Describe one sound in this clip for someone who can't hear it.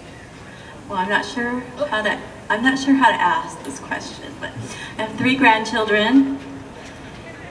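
A middle-aged woman speaks through a microphone outdoors.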